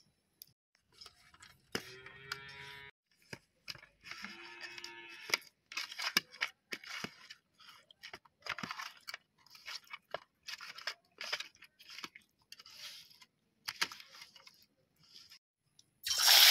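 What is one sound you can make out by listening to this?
Hands squelch and rub wet fish pieces on a metal plate.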